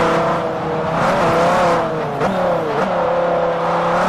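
Tyres squeal as a car drifts through a bend.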